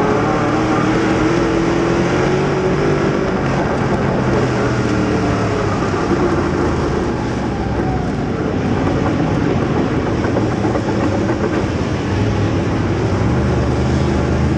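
A race car engine roars loudly up close, its pitch rising and falling as it revs.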